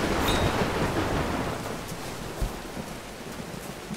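Footsteps pad on grass.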